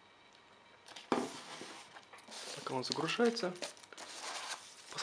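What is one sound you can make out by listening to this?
A cardboard box slides and scrapes.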